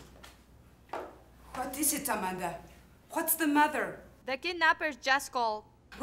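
A young woman speaks sharply and with animation up close.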